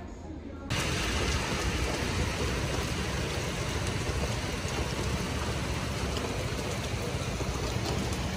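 Cars swish past on the wet road.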